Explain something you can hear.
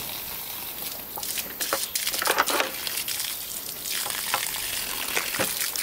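Hands squelch and rub wet raw chicken.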